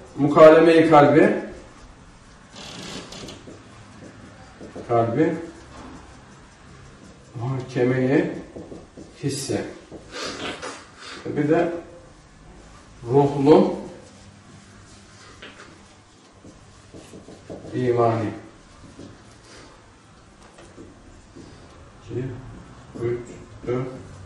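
A man speaks calmly in short phrases, as if teaching.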